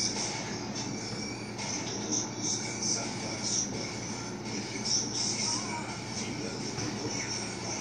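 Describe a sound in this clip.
A dog whines softly.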